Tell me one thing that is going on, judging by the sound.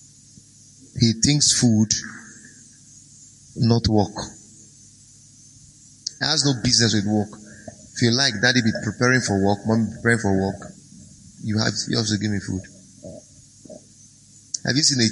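A man speaks calmly and with emphasis into a microphone.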